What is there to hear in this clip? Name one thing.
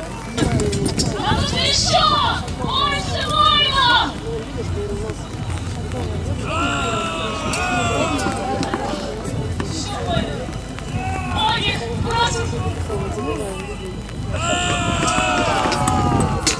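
A crowd of men shouts loud war cries outdoors.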